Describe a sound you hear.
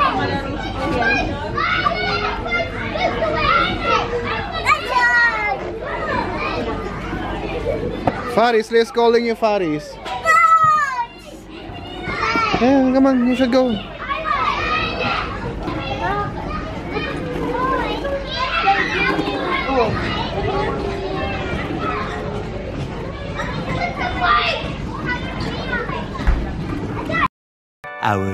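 A toddler babbles and chatters nearby.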